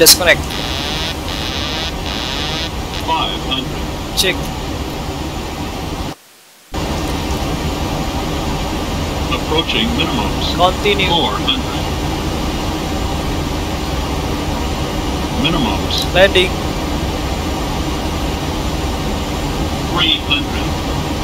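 Jet engines hum steadily in the cockpit.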